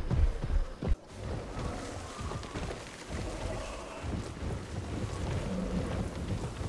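A large metal gate slides open with a steady grinding rumble.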